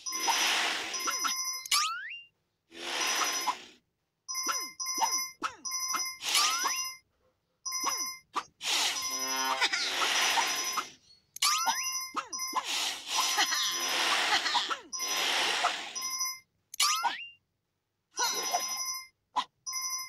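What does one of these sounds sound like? Coins chime rapidly as they are collected in a game.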